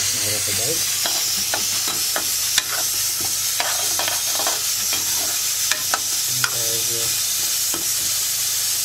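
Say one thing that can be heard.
A metal spatula scrapes and clatters against a wok while stirring dry corn kernels.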